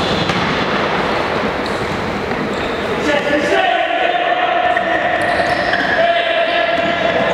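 Players run and their shoes squeak on a wooden floor in an echoing hall.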